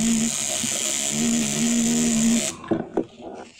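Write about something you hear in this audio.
A tattoo machine buzzes steadily.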